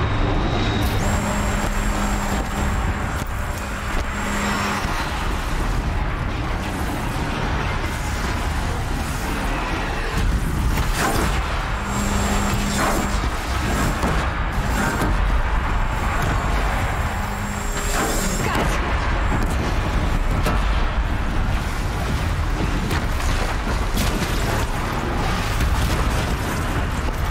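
Gunfire and energy blasts crackle and explode rapidly.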